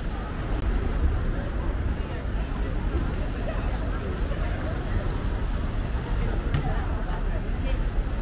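Cars drive past nearby.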